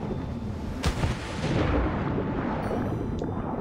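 Bubbles rush and gurgle underwater.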